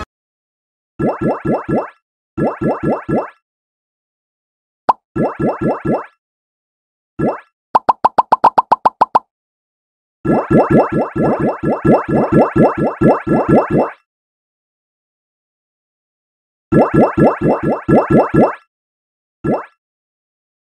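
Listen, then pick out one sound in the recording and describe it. Game sound effects play in quick bursts of bright, bouncy tones.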